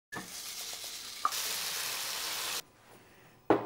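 Food sizzles loudly in a frying pan.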